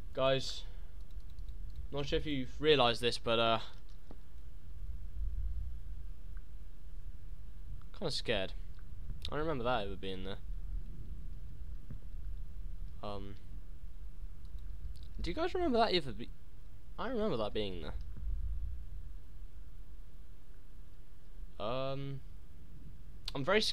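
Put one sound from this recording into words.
A young man talks into a close microphone in short bursts, with pauses between.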